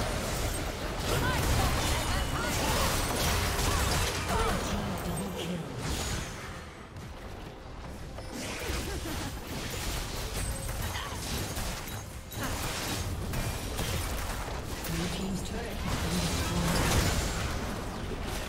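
Game spell effects whoosh and burst during a fight.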